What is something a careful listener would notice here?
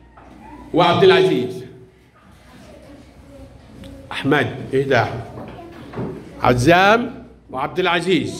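A young boy talks loudly and excitedly close by.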